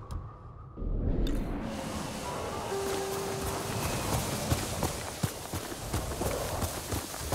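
A horse gallops through tall grass.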